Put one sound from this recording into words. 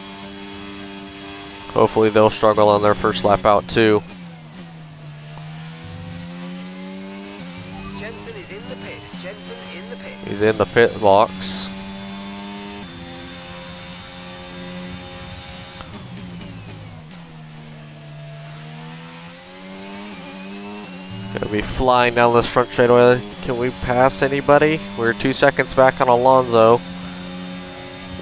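A racing car engine whines, rising through the gears and dropping when slowing down.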